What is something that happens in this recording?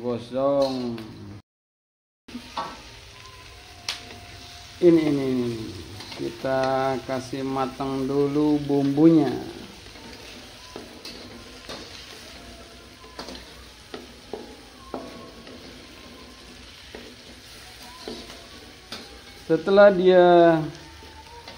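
A metal spatula scrapes and clinks against a wok.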